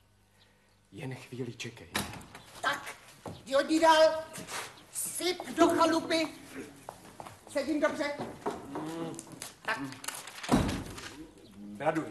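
A woman speaks loudly and with animation.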